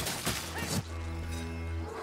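A blade slashes and strikes flesh.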